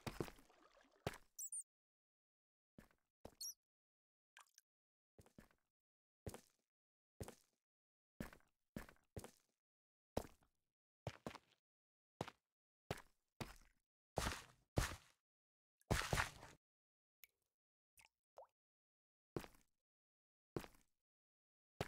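Footsteps tread slowly on stone.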